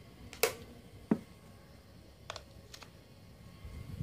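A plug clicks into a power socket.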